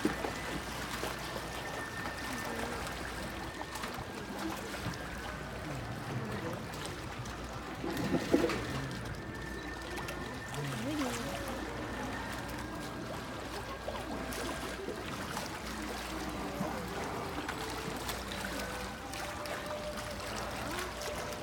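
Water laps and splashes in a pool.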